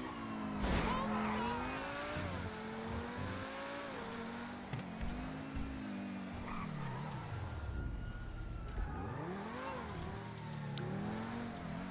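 A sports car engine revs up and down as the car accelerates.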